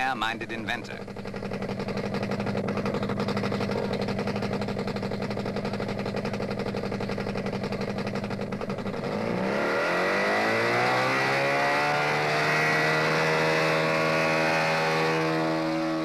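A small engine hums steadily.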